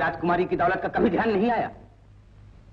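An older man speaks intensely and urgently, close by.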